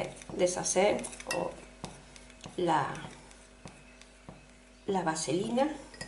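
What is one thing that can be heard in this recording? A spoon clinks against a glass.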